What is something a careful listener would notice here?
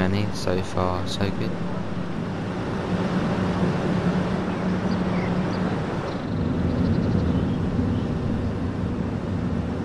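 A train's engine hums steadily at low pitch.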